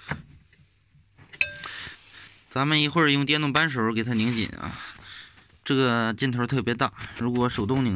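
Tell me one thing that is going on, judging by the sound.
A metal socket clinks as it is fitted onto a wrench.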